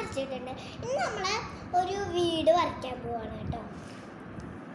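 A young girl speaks close by in a high, lively voice.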